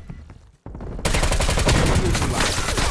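An automatic rifle fires rapidly.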